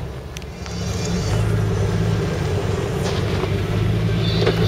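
Tyres crunch over loose rocks and dirt.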